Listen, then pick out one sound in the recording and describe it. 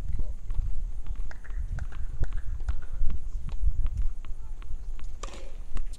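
A tennis player bounces a ball on a hard court.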